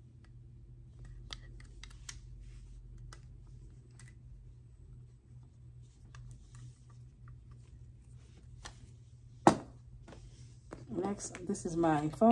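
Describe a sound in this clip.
Plastic packaging crinkles and rustles as items are handled.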